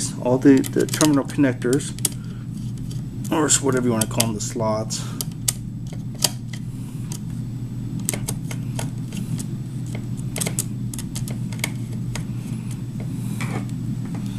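A small screwdriver clicks and scrapes against metal screw terminals.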